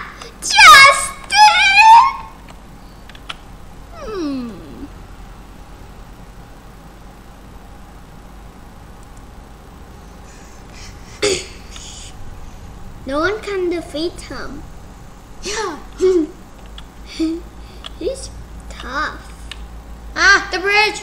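A young boy talks excitedly close to a microphone.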